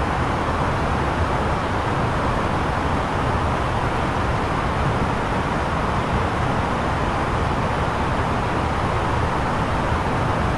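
Jet engines and rushing air roar steadily around an aircraft.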